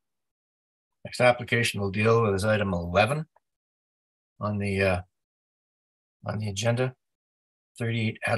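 An older man speaks calmly over an online call, in short phrases with pauses.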